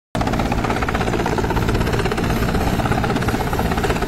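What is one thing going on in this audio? A helicopter engine drones loudly and steadily.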